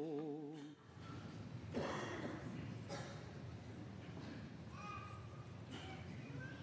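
A large congregation sings a hymn in a large echoing hall.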